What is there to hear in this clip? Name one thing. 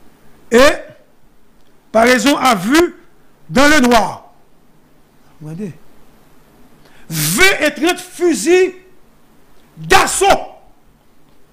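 A man speaks with animation into a close microphone, in short emphatic bursts.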